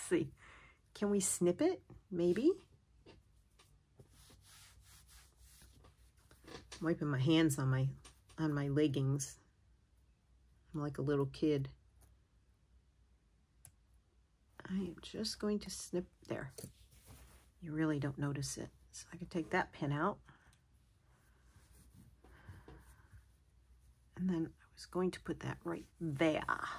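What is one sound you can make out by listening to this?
Fabric rustles softly as it is handled.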